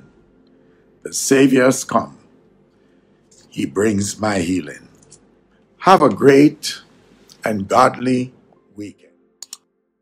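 An elderly man speaks slowly and calmly into a microphone close by.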